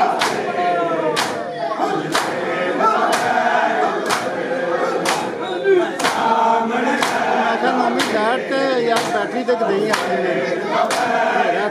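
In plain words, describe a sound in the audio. A crowd of men beat their chests in a steady rhythm, about once a second.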